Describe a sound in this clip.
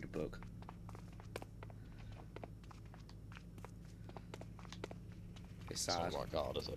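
Soft footsteps patter quickly.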